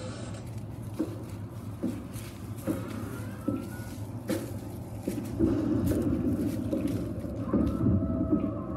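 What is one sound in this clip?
Feet stomp and shuffle on dry leaves in a steady beat.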